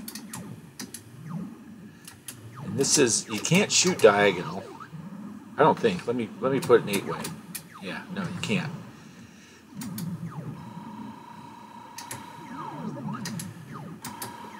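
Retro video game sound effects beep and blip.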